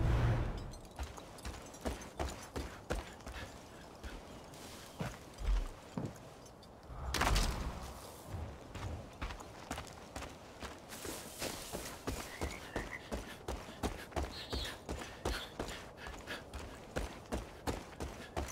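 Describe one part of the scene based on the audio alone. Footsteps crunch steadily on dirt and gravel.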